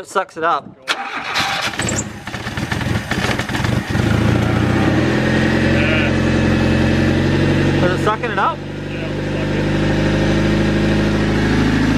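A car engine idles with a steady, low hum.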